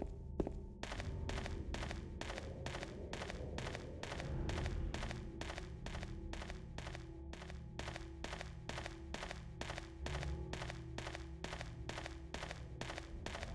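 Footsteps run quickly and steadily on a dirt path.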